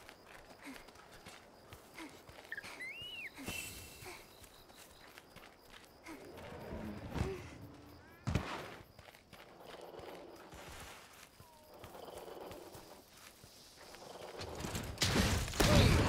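Heavy armoured footsteps clank across the ground.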